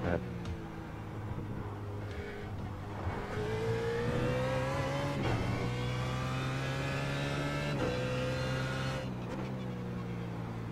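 A race car engine roars, rising in pitch as it speeds up and dropping sharply at each gear change.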